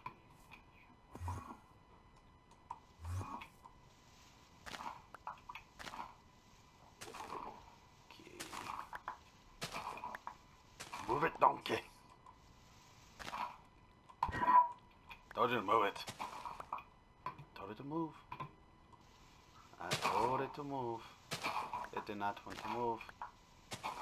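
A shovel digs dirt in quick repeated crunches.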